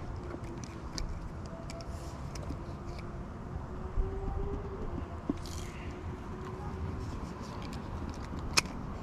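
A fishing reel clicks and ticks faintly.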